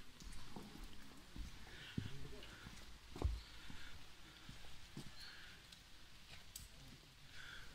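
Footsteps tread on wet paving nearby.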